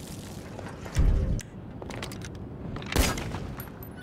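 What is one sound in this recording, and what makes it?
Gunshots crack loudly, twice.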